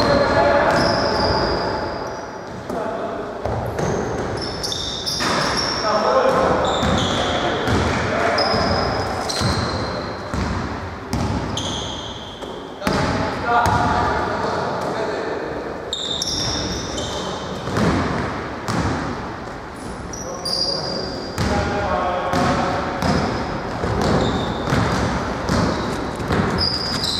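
Sneakers squeak sharply on a gym floor, echoing in a large hall.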